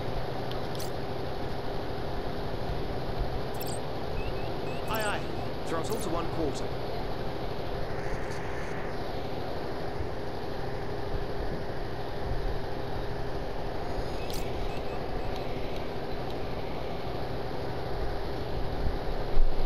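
A low steady hum drones throughout.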